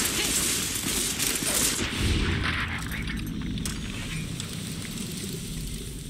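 Heavy thuds and scuffling sound in a close fight.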